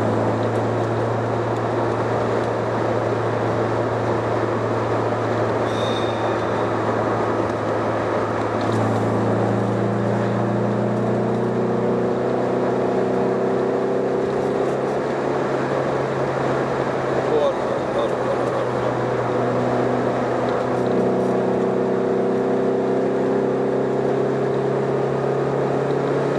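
A car engine hums steadily from inside the car, shifting pitch as the car changes gear.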